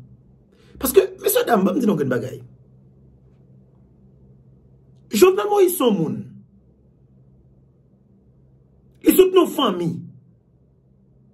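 A young man speaks close to a microphone in short, emphatic phrases with pauses between them.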